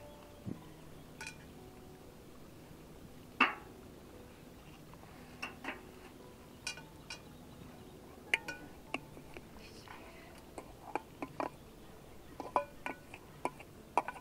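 Metal pots clink and clank.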